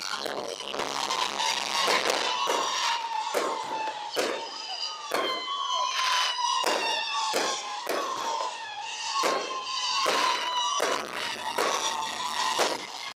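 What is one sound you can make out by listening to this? Fireworks bang and pop in quick succession.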